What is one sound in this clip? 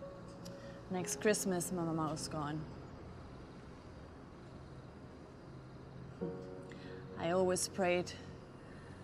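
Another woman answers in a low voice close by.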